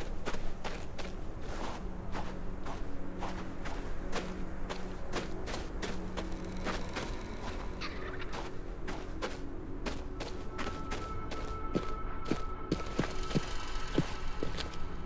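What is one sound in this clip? Footsteps thud at a steady pace on hard ground.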